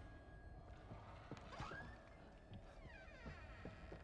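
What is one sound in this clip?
A door creaks open.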